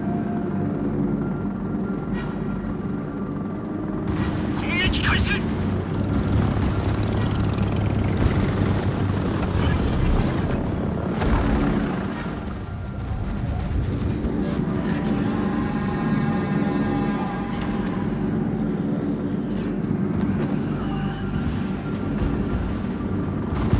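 Aircraft engines drone steadily.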